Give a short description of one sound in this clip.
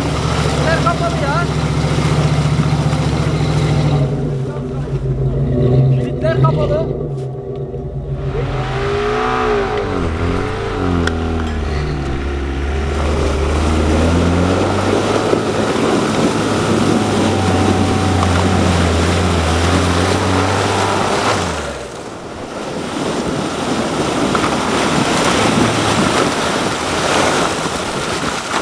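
An off-road vehicle's engine revs as it churns through mud and snow.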